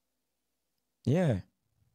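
A man briefly speaks a short sound into a microphone, close up.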